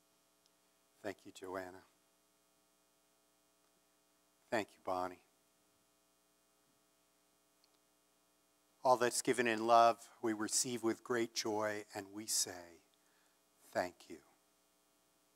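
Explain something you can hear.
An elderly man speaks to an audience through a microphone, with pauses between phrases.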